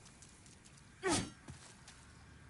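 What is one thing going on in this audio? A heavy weapon swings and strikes with a sharp crash.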